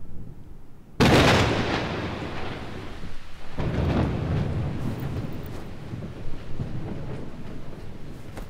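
Thunder cracks loudly and rumbles away outdoors.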